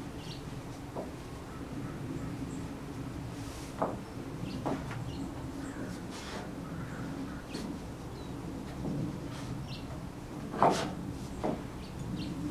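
Shoes tap and scuff on a wooden deck outdoors.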